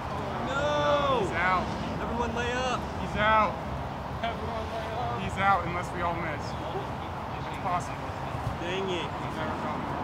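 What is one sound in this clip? A man talks casually outdoors, a short way off.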